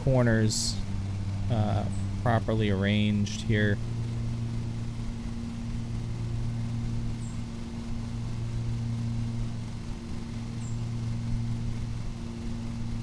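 A lawn mower engine hums steadily.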